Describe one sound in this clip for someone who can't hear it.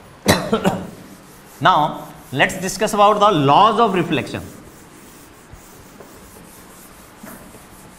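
A duster rubs across a chalkboard.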